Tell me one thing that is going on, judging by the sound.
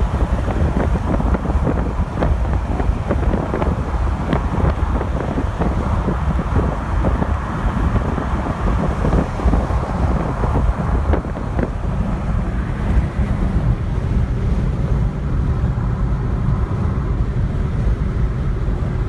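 Tyres roar on a motorway.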